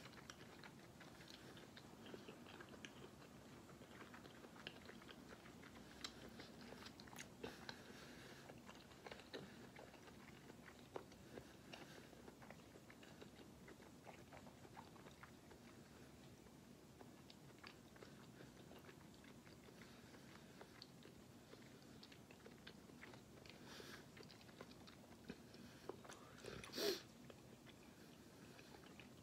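A young woman chews food with soft, wet mouth sounds close to a microphone.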